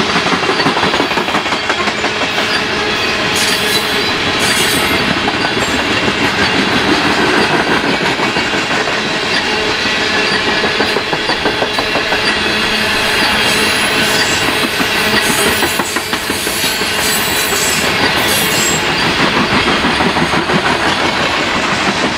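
Freight cars rumble and clatter loudly past along the rails.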